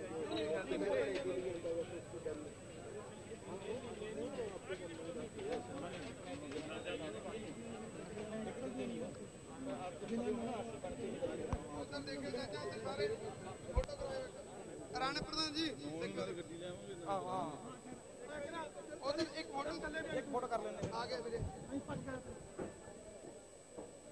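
A crowd murmurs and chatters.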